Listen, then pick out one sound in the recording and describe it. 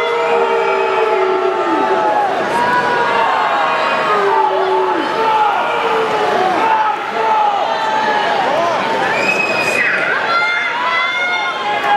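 A large crowd cheers and shouts loudly in a big echoing arena.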